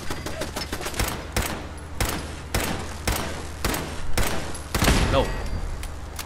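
A rifle fires shot after shot.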